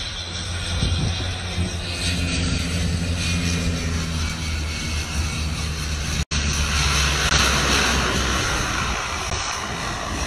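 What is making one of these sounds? A seaplane's engine drones in the distance as it lands on the water.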